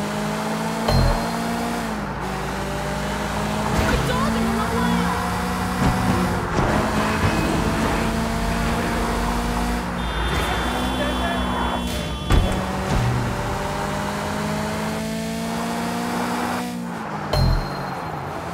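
Tyres thump over bumps on the road.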